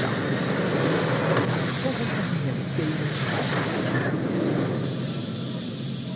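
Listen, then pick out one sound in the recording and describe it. A structure explodes with a booming blast.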